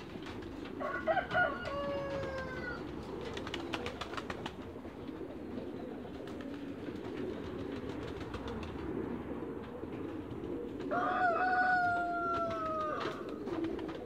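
A duck gives drawn-out calls nearby.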